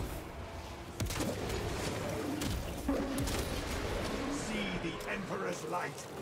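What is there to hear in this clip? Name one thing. A heavy rifle fires loud, sharp shots.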